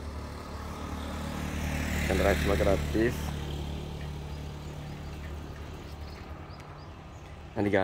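A motorbike engine hums as it passes along the street and fades away.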